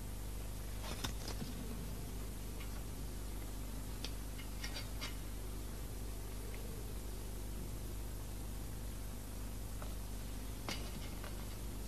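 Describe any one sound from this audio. A metal elevator gate clanks and rattles.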